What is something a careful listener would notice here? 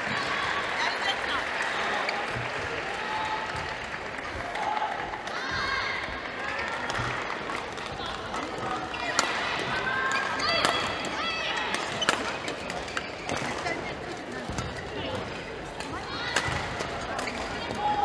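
Shoes squeak sharply on a hard court floor, echoing in a large hall.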